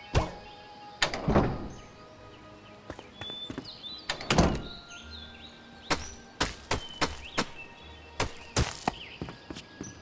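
A wooden door swings open with a heavy thud.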